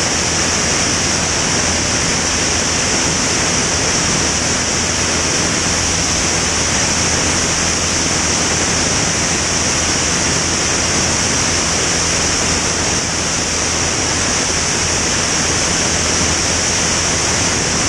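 Wind rushes past the plane.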